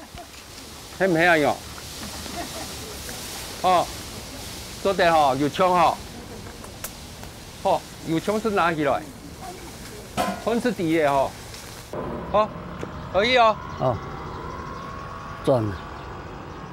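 A middle-aged man talks calmly nearby.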